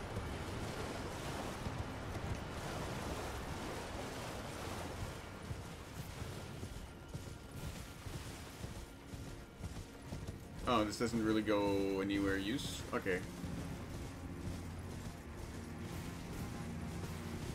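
A horse's hooves gallop steadily.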